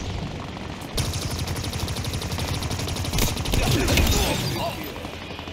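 A game weapon fires rapid bursts of crackling bolts.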